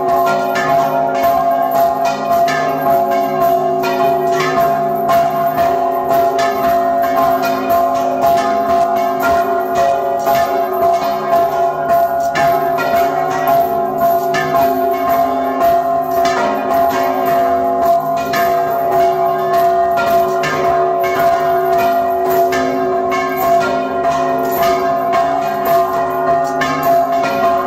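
Large church bells ring loudly and repeatedly close by, their tones ringing on and overlapping.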